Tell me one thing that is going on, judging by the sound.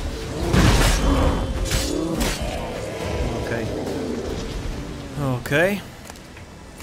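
A bear growls and roars.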